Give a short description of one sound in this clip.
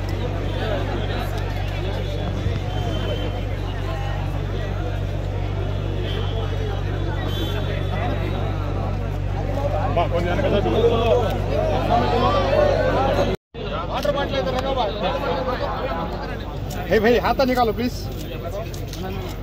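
A large crowd of men chatters loudly all around.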